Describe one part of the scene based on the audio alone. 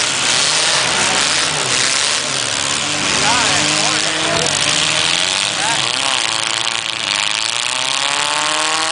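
Car engines roar and rev loudly outdoors.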